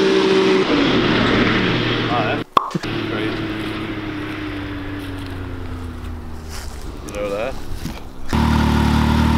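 An off-road vehicle's engine drones as it drives away across a field.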